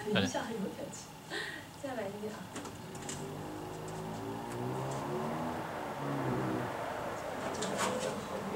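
An electric keyboard plays soft notes.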